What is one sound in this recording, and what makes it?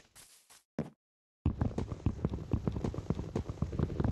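A wooden block breaks with a crunch.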